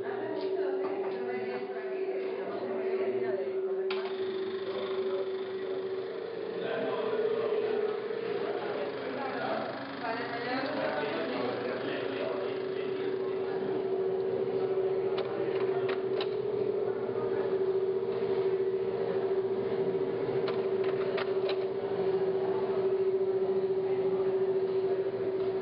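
A film projector whirs with a steady hum.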